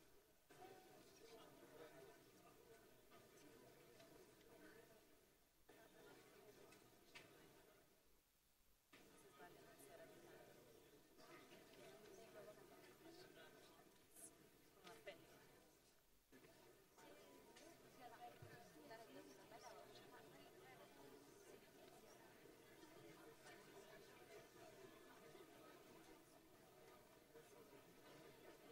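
A crowd of men and women murmurs and chats in a large, echoing hall.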